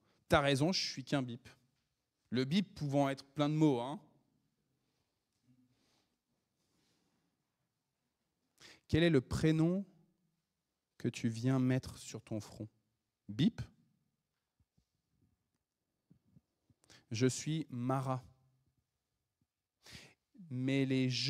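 A man speaks with animation through a microphone, with pauses, in a reverberant hall.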